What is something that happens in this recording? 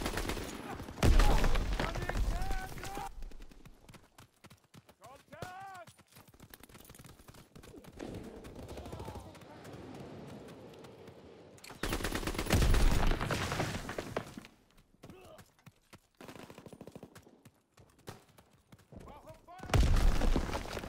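A rifle fires loud, sharp shots with a booming echo.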